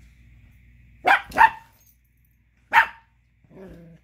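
A small dog barks sharply a few times.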